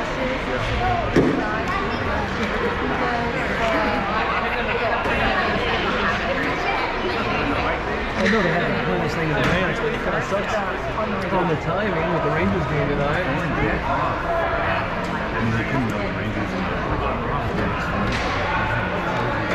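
Hockey sticks clack against pucks.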